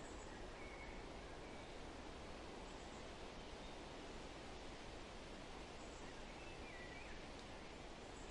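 Footsteps tap softly on a paved path.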